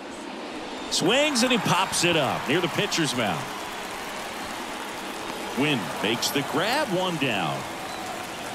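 A crowd cheers loudly in bursts.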